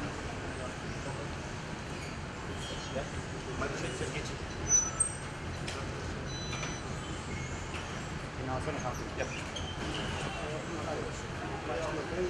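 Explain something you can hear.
A low hum fills a large, echoing hall.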